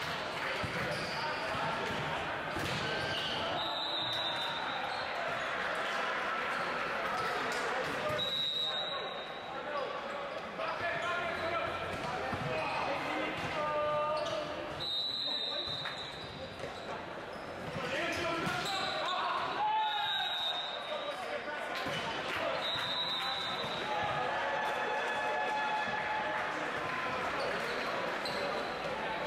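Young men shout to each other during play.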